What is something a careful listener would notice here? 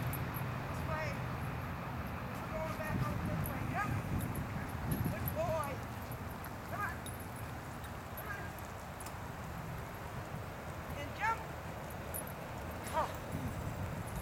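A woman calls out commands to a dog from a distance.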